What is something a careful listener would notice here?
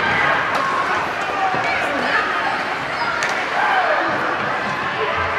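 A crowd cheers and shouts in an echoing arena.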